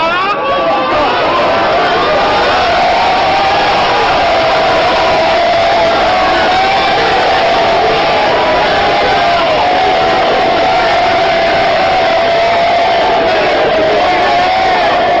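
A crowd cheers and shouts close by.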